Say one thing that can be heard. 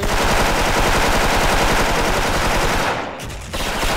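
A rifle fires in a rapid burst of loud gunshots.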